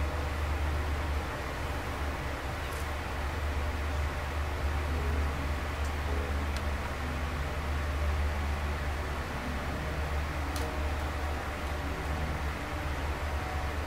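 Hands rub and knead a bare leg softly.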